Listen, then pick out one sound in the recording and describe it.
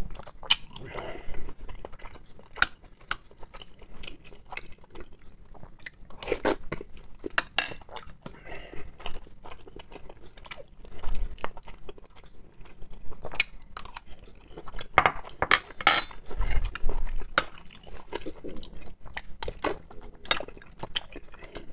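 A metal fork clinks against a plate.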